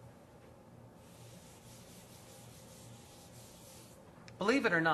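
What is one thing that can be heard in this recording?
An eraser wipes across a whiteboard with a soft rubbing hiss.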